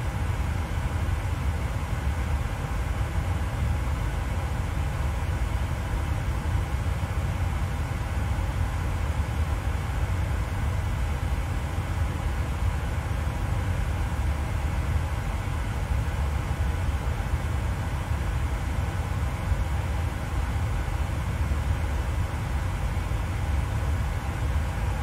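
Jet engines hum steadily at idle, heard from inside a cockpit.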